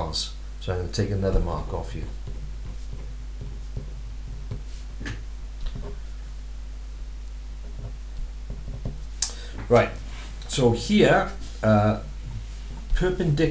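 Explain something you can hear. A pen scratches and taps on paper.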